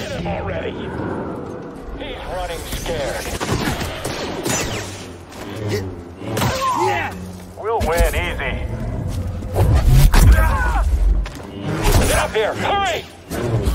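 A laser sword hums and swooshes through the air.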